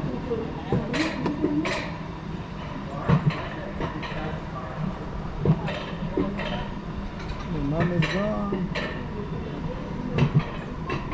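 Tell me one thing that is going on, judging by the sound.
Wheels clack over rail joints now and then.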